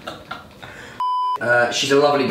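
A steady test tone beeps briefly.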